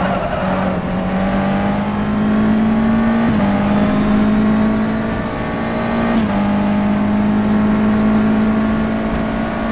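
A racing car engine whines at high revs, rising steadily and dropping briefly with each gear change.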